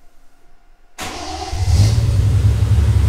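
A car engine cranks and starts up.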